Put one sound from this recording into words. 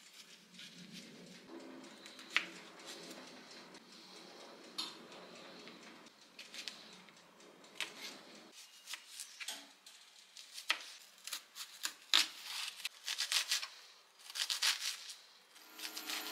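A knife taps on a cutting board, chopping quickly.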